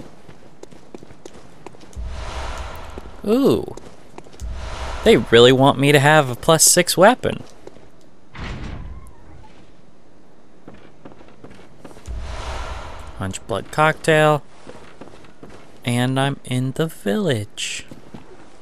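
Footsteps crunch steadily on stone and wooden boards.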